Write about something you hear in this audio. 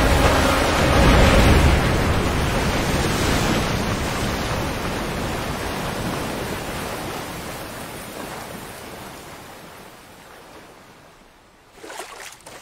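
Water surges and splashes with a roaring rush.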